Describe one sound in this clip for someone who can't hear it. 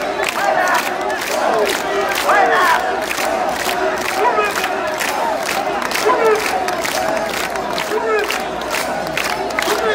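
A large crowd chants and shouts loudly outdoors.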